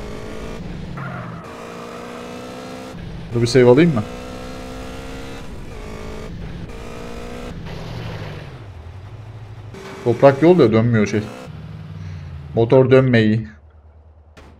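A motorbike engine revs and hums.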